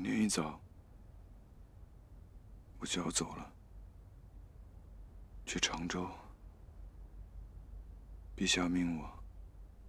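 A man speaks quietly and calmly in short phrases, close by.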